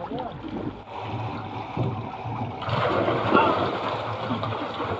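Water splashes as a man wades and moves a net in a tank.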